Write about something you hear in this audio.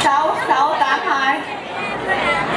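A young woman speaks animatedly into a microphone over a loudspeaker.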